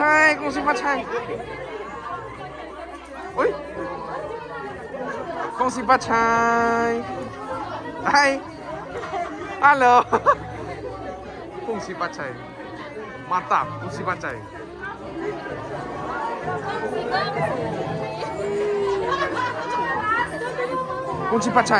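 Women and men chatter and laugh together nearby.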